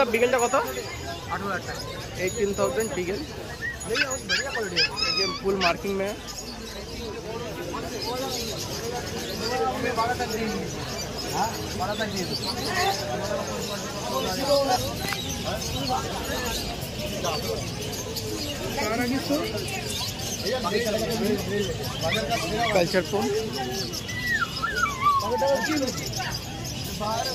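A busy crowd chatters in the background outdoors.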